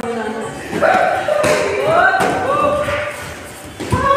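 Kicks thud against padded chest guards.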